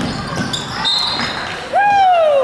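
A referee's whistle blows.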